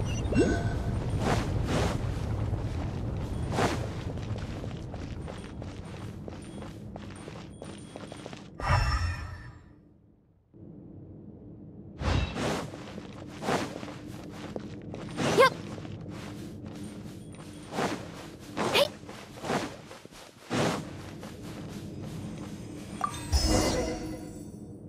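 Footsteps patter quickly over rough ground.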